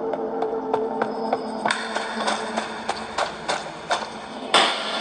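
Footsteps thud steadily on a floor in a game.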